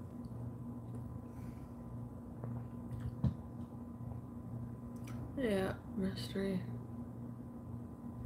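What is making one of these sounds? A woman gulps a drink from a plastic bottle.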